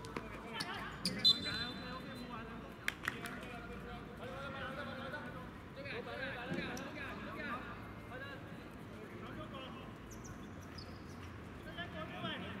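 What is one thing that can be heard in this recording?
Several young people call out and chatter across an open outdoor court.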